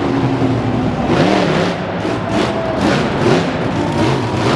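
Metal crunches as a monster truck lands on a car.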